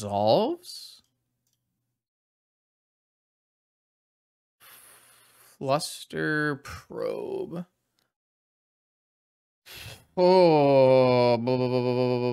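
A young man talks with animation close to a microphone, in short bursts with pauses.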